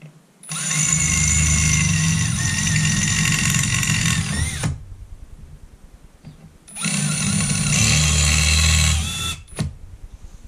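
A cordless drill whirs loudly in bursts.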